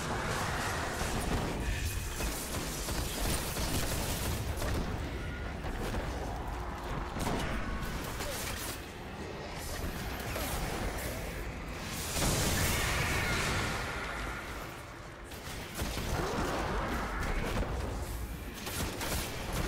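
Rifle shots crack and boom in quick bursts.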